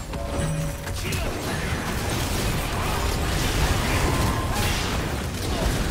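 Game spells and attacks crackle and boom in a fast fight.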